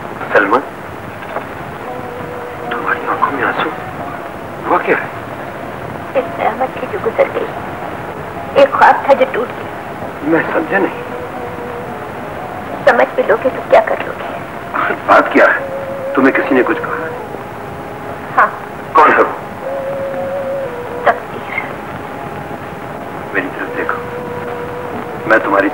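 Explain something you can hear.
A man speaks in an agitated voice, close by.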